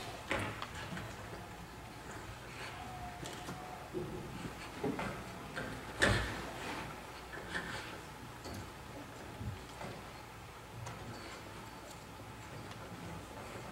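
Objects knock and clunk as a man handles something near the floor.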